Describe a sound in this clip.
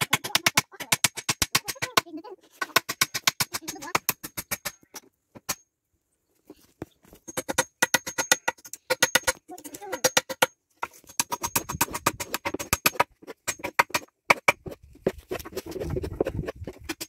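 A hammer strikes wood in quick, repeated blows.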